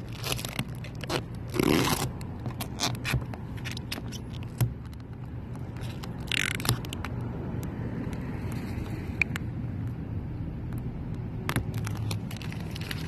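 Plastic film crinkles and rustles as it is peeled off.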